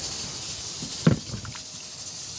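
A fruit slice drops into a metal bowl with a thud.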